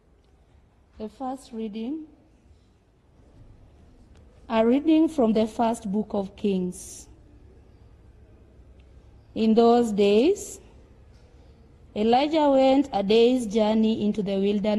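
A woman sings slowly in short phrases through a microphone.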